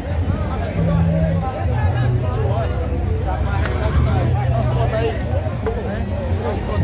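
A crowd of men and women chatter and call out all around, outdoors.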